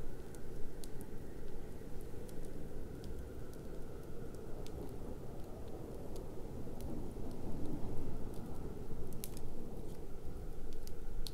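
Burning logs crackle and pop.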